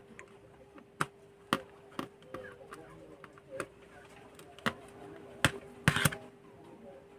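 A small screwdriver clicks and taps against a circuit board.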